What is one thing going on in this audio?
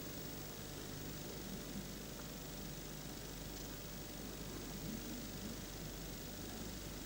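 A cue tip taps a ball.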